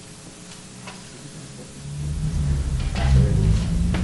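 Papers rustle as a document is lifted.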